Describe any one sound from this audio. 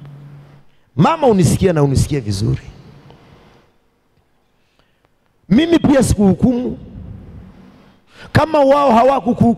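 A man preaches with animation into a microphone, his voice carried over a loudspeaker in a reverberant room.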